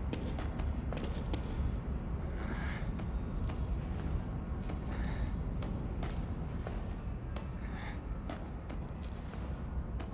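Hands and feet clank on a metal ladder as someone climbs.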